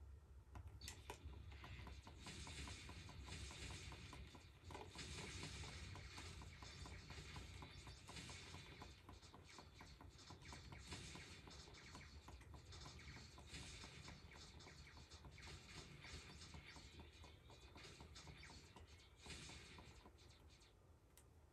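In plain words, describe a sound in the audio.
Rapid electronic laser shots fire from a video game on a television.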